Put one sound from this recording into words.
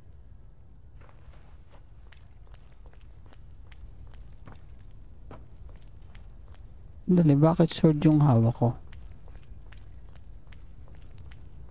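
Footsteps patter quickly on stone steps.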